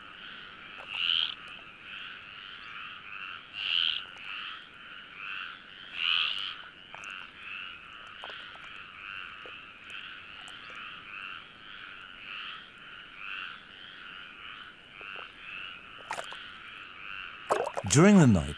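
Many frogs croak in a rapid, pulsing chorus.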